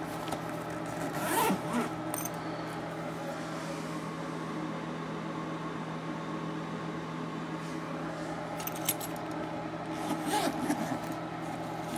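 A fabric bag rustles as a hand handles it.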